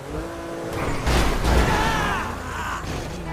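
A car crashes into another car.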